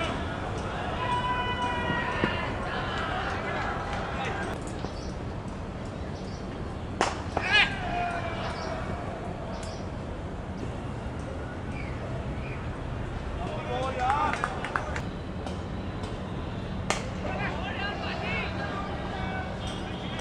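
Men on a cricket field shout and call out outdoors.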